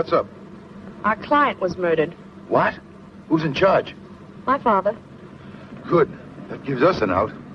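A middle-aged man speaks close by.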